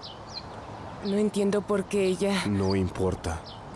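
A woman speaks emotionally close by.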